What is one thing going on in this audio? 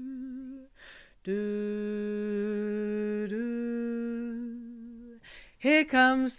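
A woman breathes in audibly between notes.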